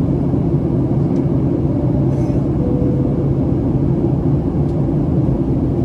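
A jet engine roars steadily in a low, loud rumble, heard from inside an airliner cabin.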